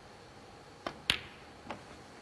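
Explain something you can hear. A cue ball clicks sharply against another ball.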